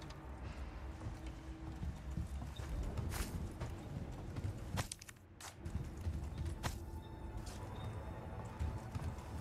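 Footsteps thud on creaky wooden floorboards.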